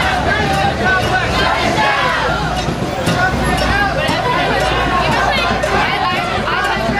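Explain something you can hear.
A large crowd of marchers chants and talks loudly outdoors.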